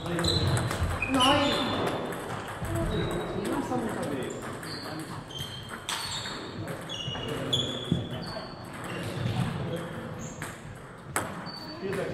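Table tennis balls click sharply off paddles and tables in an echoing hall.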